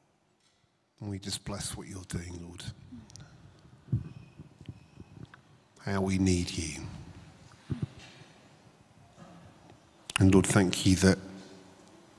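A man speaks calmly into a microphone through loudspeakers, in short bursts with pauses, in an echoing hall.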